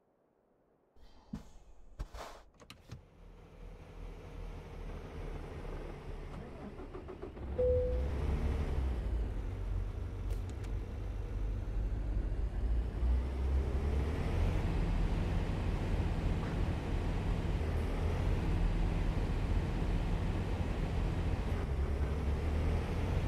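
A truck engine drones low and steady, growing louder.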